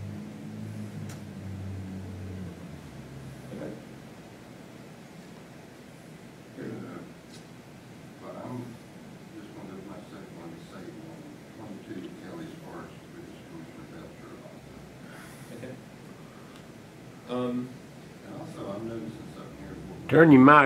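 A man speaks calmly into a microphone, heard through a loudspeaker in a large echoing room.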